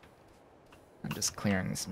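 A young man speaks casually, close to a microphone.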